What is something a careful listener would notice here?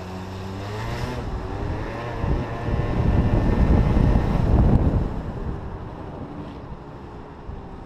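A motorcycle engine revs up and roars as it speeds away.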